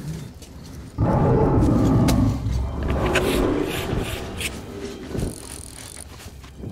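Rain patters on a gas mask close by.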